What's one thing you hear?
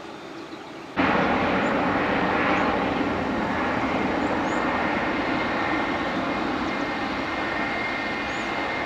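Jet engines roar loudly as airliners taxi nearby.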